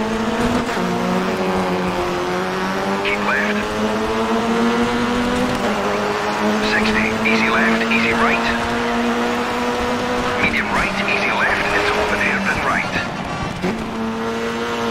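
A rally car engine roars at high revs, changing pitch as it shifts gears.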